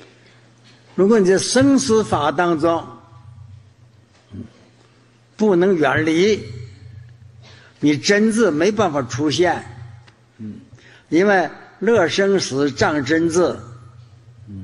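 An elderly man speaks slowly and calmly into a microphone, in short phrases with pauses.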